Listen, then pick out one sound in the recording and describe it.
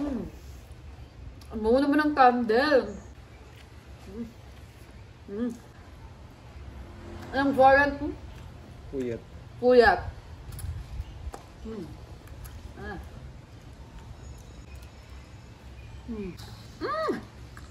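A young woman chews and munches on food.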